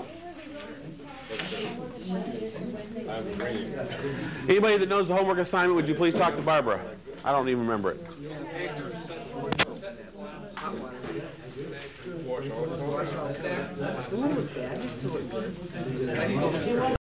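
A man talks in a lively, animated voice in a room.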